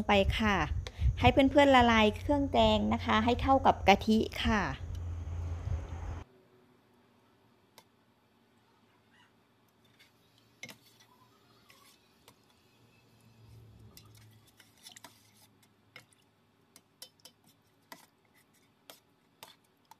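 A spoon stirs liquid in a pot.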